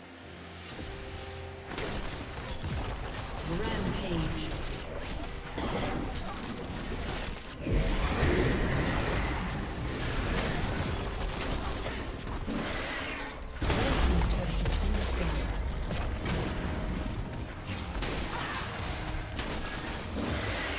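Game battle effects clash and crackle with spell blasts and hits.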